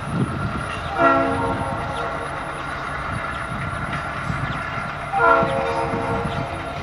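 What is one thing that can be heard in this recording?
A train horn blows two loud blasts.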